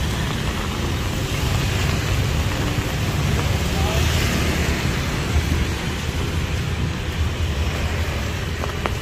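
City traffic rumbles steadily along a nearby street.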